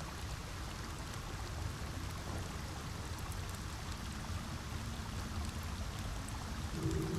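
Torch flames crackle softly.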